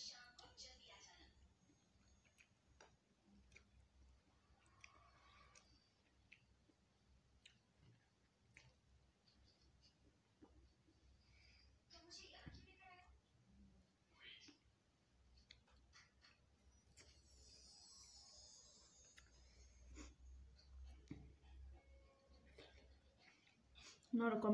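A young woman chews food close by.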